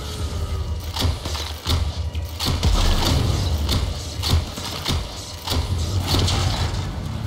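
Energy bolts fire from a bow in sharp bursts.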